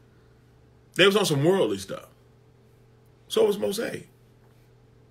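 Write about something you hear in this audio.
A man speaks close to a microphone in short, animated bursts.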